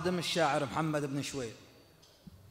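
A young man recites in a drawn-out, melodic voice through a microphone.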